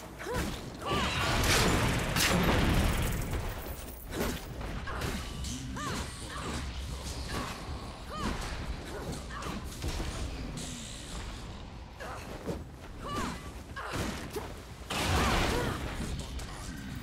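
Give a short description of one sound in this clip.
A huge beast roars and snarls.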